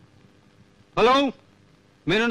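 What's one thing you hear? A man speaks briefly into a telephone.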